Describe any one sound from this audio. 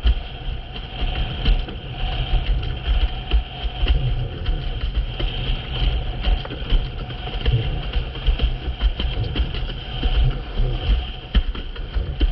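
A windsurf board skims and sprays across the water.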